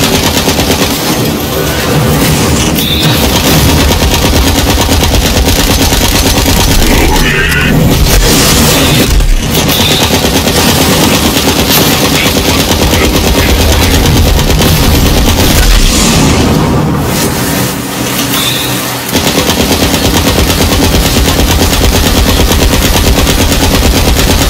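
Rapid gunfire rattles continuously.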